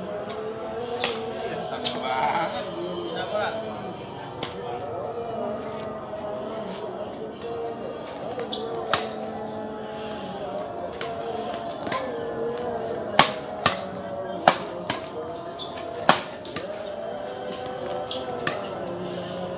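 Rackets strike a shuttlecock with sharp smacks.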